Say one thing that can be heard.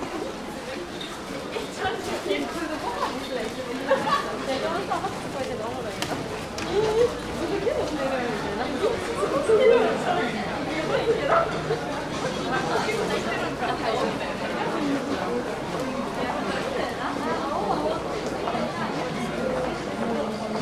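Footsteps of many people walk on a hard floor.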